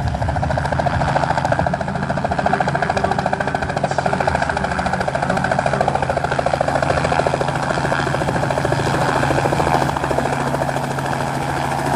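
A helicopter's rotor blades thump rapidly as it approaches and hovers nearby.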